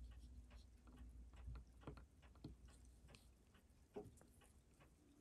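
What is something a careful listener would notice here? Rubber-covered fingertips rub and squeak softly against each other, close up.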